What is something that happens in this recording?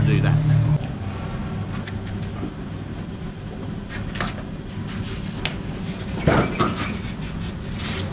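Footsteps splash on a wet floor.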